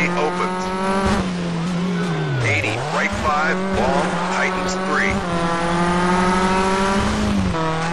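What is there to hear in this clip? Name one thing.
A turbocharged rally car engine revs hard, dropping and climbing through the gears.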